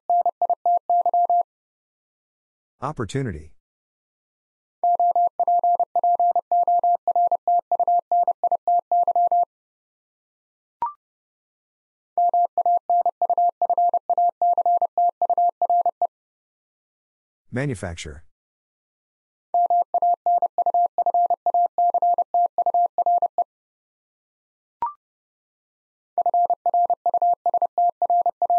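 A telegraph key taps out Morse code as rapid, steady beeps.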